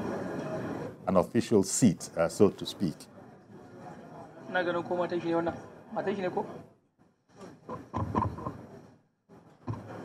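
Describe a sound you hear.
Men talk among themselves.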